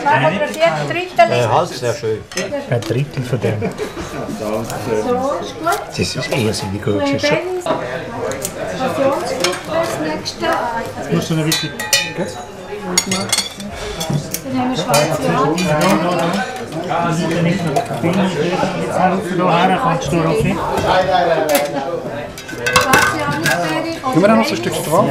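Several adults chat nearby in a busy room.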